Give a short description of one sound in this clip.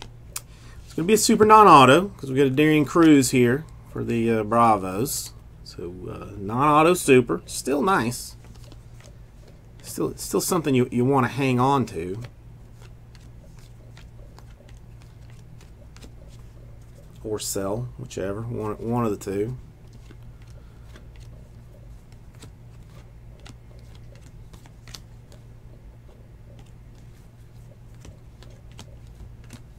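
Trading cards slide and rustle softly between hands.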